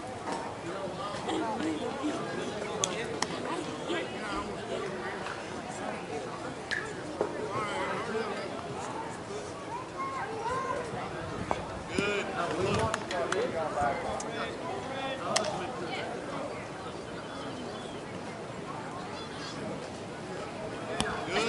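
Several men talk and call out outdoors.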